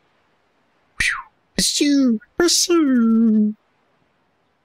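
A video game menu plays a short series of bright chimes and swooshes.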